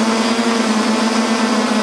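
A go-kart engine buzzes as the kart drives along a track.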